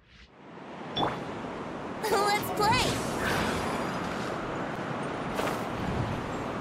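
A strong gust of wind whooshes upward.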